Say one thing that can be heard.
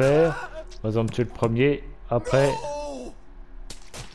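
A game sound effect slashes sharply.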